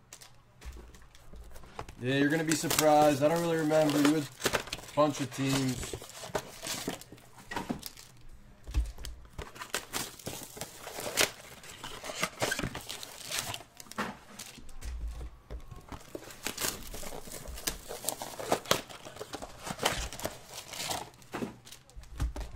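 Stacks of card packs tap and knock against a table.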